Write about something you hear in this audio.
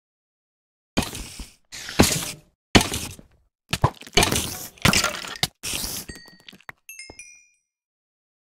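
A sword strikes a rattling skeleton in quick, sharp hits.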